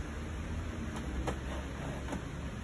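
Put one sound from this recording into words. A printer tray clicks.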